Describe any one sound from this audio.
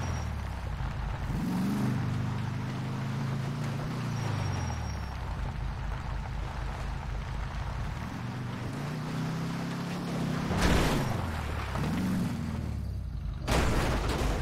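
A car engine revs and rumbles over rough ground.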